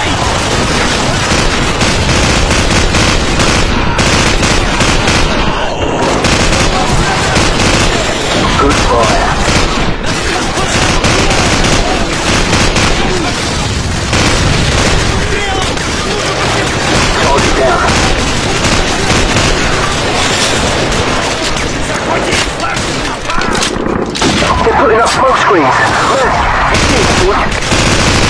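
A machine gun fires in long rapid bursts.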